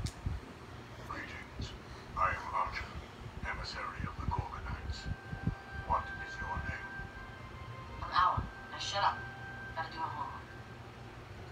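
A television plays dramatic film sound through its loudspeaker.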